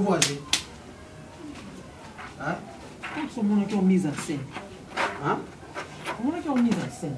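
A woman speaks loudly and with animation nearby.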